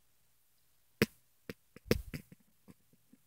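A small toy knocks lightly as hands handle it.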